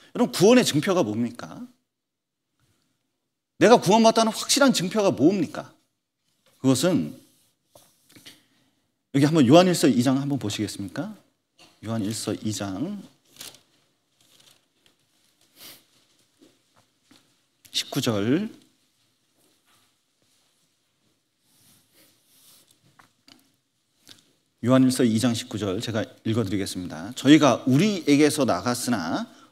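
A middle-aged man speaks slowly and earnestly into a microphone, with pauses.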